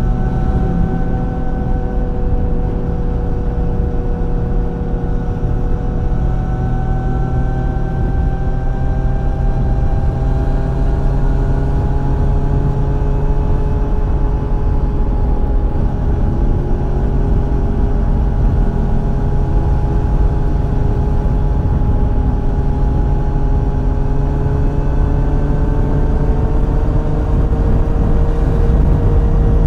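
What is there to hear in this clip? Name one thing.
A motorcycle engine hums steadily at high speed, its pitch slowly shifting.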